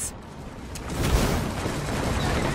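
Gunshots fire in a short rapid burst.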